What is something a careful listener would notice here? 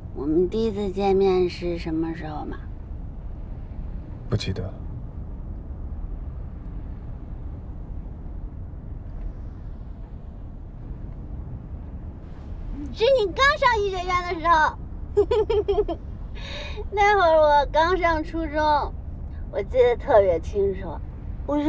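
A young woman speaks softly and warmly, close by.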